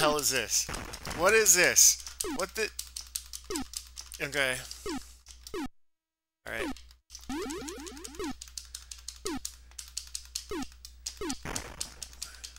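Electronic explosions burst and crackle.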